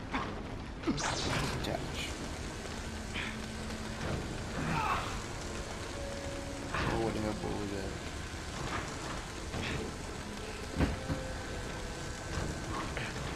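A laser beam hums and crackles as it cuts through metal.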